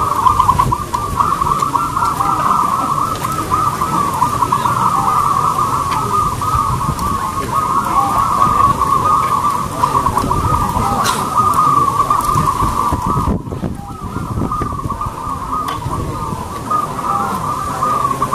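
Many caged songbirds chirp and trill rapidly and continuously.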